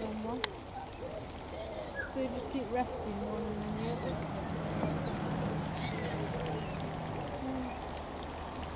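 Flamingos honk and grunt softly nearby.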